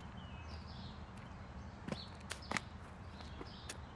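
Footsteps crunch on dry ground outdoors.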